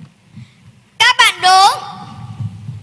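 A young woman calls out loudly through a loudspeaker in a large hall.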